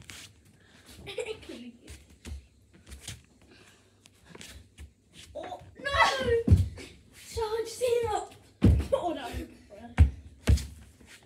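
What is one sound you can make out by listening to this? Footsteps thump on a floor close by.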